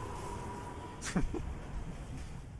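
A magic blast whooshes loudly.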